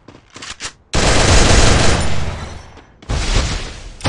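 Rapid gunshots fire in a loud burst.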